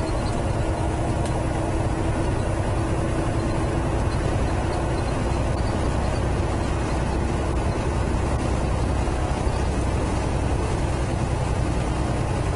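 A truck engine rumbles steadily from inside the cab.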